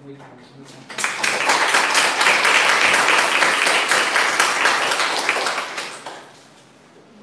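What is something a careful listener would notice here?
A small audience applauds.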